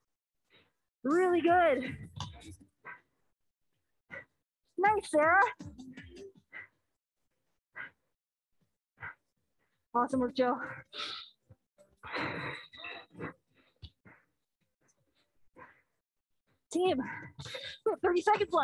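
A woman speaks with animation through a microphone, in bursts with pauses.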